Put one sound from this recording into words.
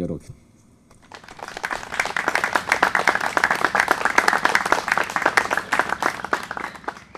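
A small audience claps their hands.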